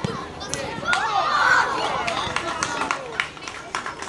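Young children cheer loudly.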